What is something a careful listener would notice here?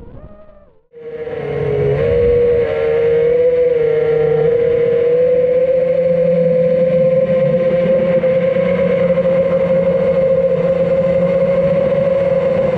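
A small drone's motors whine steadily, rising and falling in pitch as it flies.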